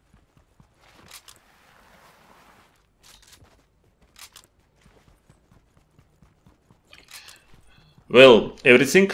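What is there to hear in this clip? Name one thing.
Light footsteps patter quickly on hard ground.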